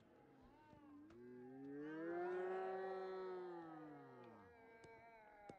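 Children shout and cheer outdoors.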